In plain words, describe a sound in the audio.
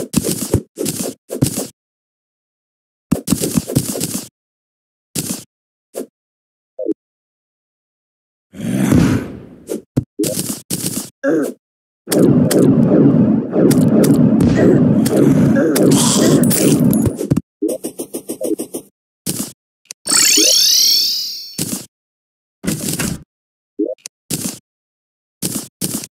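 Short digging clicks and thuds come in quick bursts.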